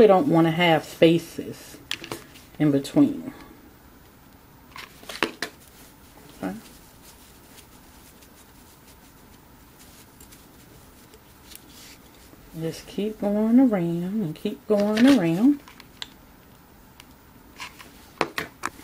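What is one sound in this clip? A hand handles a glass bottle with soft knocks and taps.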